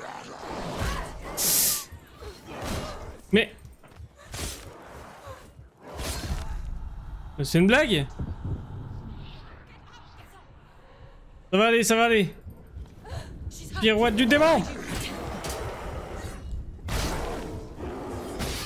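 Blades slash and strike in quick, sharp hits.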